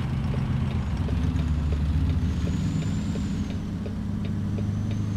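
A heavy truck engine rumbles steadily at a low pitch.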